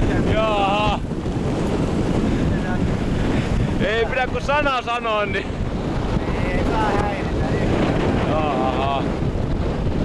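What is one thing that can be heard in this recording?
A man speaks loudly and laughs over the wind.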